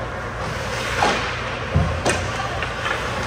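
Players thud against the boards of a rink.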